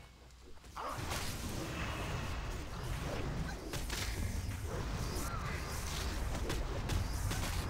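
Weapons clash and strike in rapid hits.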